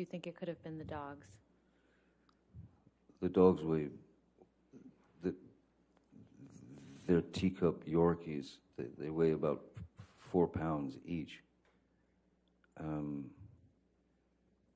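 A middle-aged man speaks calmly and haltingly into a microphone.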